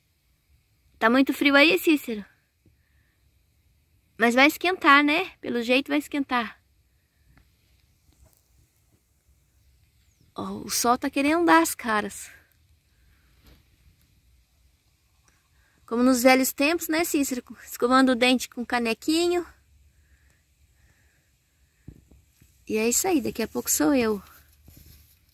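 A man blows a small hand-held call close by, in short warbling bursts with pauses between them.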